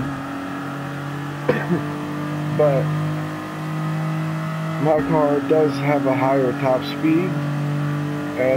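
A prototype race car engine drones.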